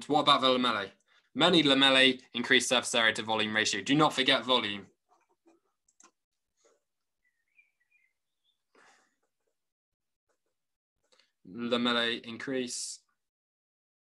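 A young man talks calmly and clearly over an online call.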